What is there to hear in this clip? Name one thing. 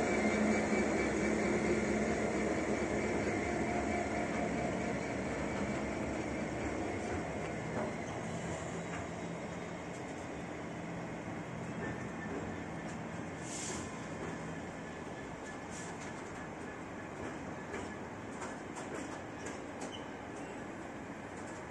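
Wagon wheels clatter and squeal over the rails.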